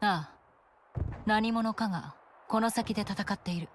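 A young woman answers calmly.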